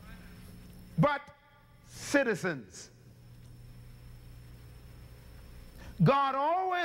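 A man speaks with animation through a microphone, with pauses between phrases.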